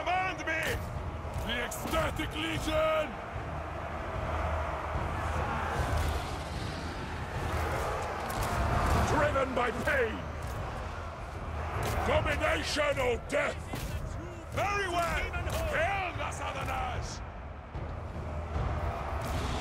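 Battle noise of clashing weapons and shouting soldiers rumbles steadily.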